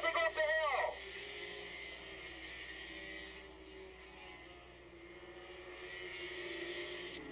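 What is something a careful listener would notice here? Motorcycle engines drone more steadily as the bikes move away.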